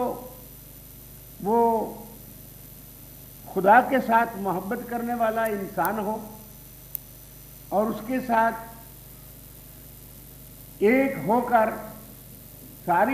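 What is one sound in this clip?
A middle-aged man gives a speech through a microphone, in phrases broken by pauses.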